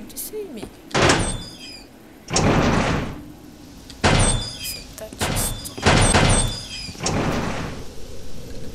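A heavy metal door bangs and scrapes.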